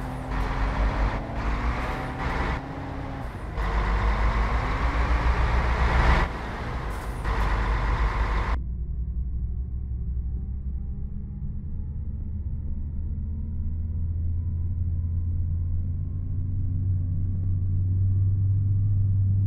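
A bus engine hums and rises in pitch as the bus speeds up.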